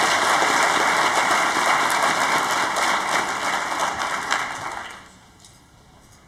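An audience applauds in a large hall, then the clapping dies away.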